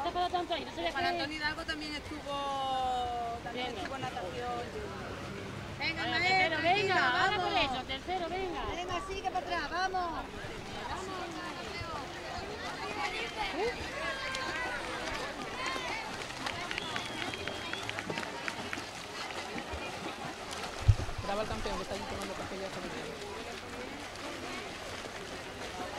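A crowd of children and adults cheers and shouts outdoors.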